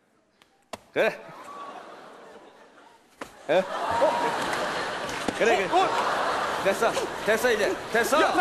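A studio audience laughs loudly.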